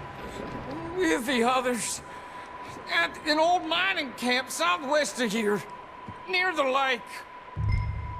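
A man answers in a strained, pained voice.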